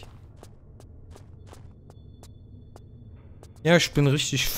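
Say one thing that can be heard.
Footsteps tap quickly and evenly on stone.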